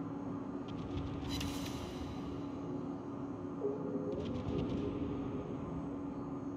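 Shells splash into the sea.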